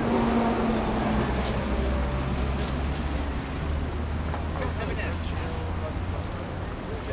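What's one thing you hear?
Men and women chat quietly nearby outdoors.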